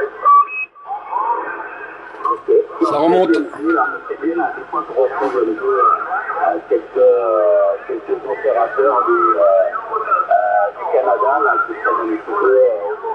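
A radio receiver plays a narrow, tinny transmission through its speaker.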